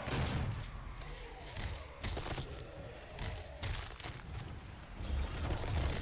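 Monsters growl and screech.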